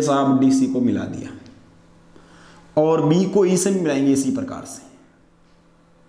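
A man speaks clearly and close by, in short bursts.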